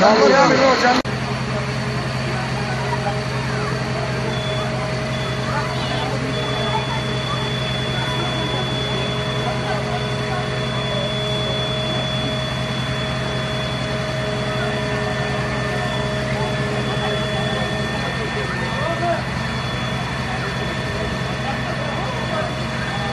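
A fire truck's engine hums steadily nearby.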